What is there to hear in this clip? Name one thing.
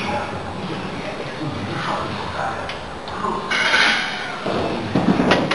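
Weight plates clink on a barbell as it is lowered and pressed up.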